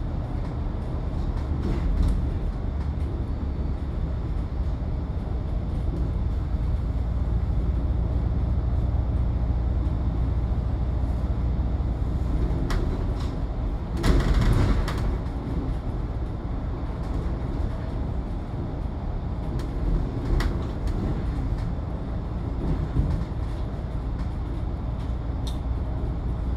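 Tyres roll on the road surface.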